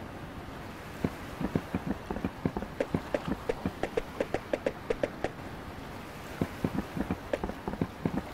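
Footsteps clatter on wooden planks.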